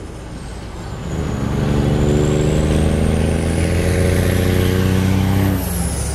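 A truck engine roars loudly as a truck accelerates past.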